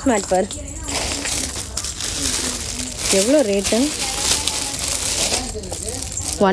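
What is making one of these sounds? Plastic wrapping crinkles and rustles as a mat is handled.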